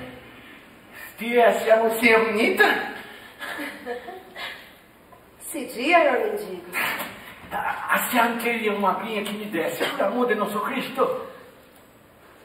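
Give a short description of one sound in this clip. A young woman sings with feeling in a large echoing hall.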